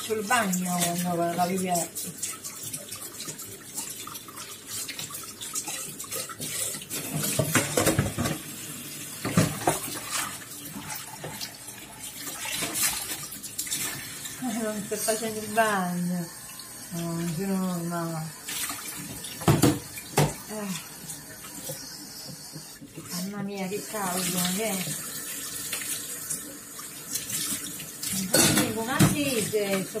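Metal pots clank and knock against each other and the sink.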